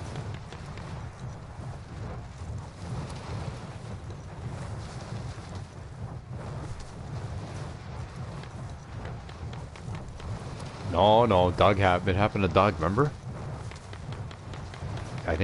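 Wind rushes steadily past a parachute in flight.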